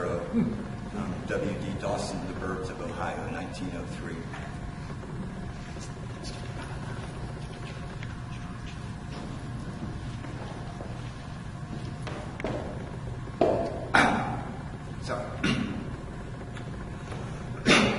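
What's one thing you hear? A middle-aged man reads aloud into a microphone in a calm voice.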